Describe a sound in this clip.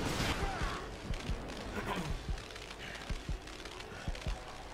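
Heavy machine-gun fire clatters in short bursts.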